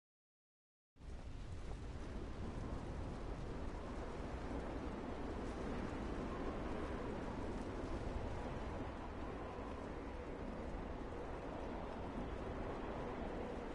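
A tank engine rumbles and idles steadily.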